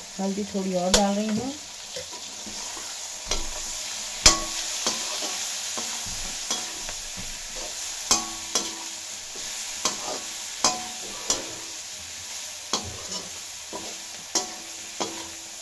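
Food sizzles in a hot wok.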